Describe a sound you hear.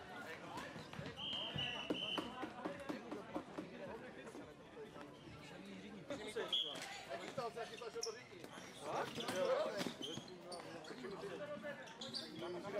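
Plastic sticks clack together.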